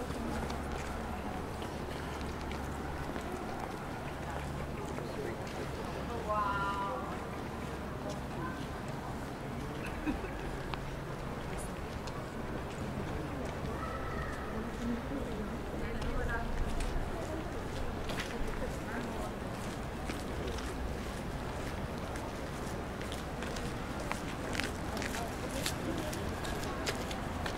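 Traffic rumbles steadily on a nearby street, outdoors.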